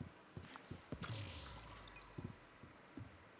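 A loud landing thump rings out after a jump.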